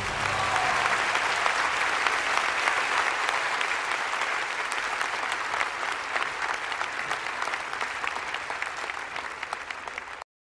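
A large audience applauds in a big echoing hall and slowly quiets.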